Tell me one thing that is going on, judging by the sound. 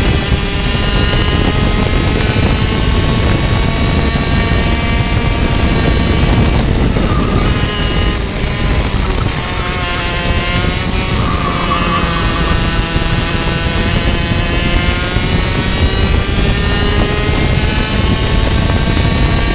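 A kart engine screams loudly close by, its pitch rising and falling with the throttle.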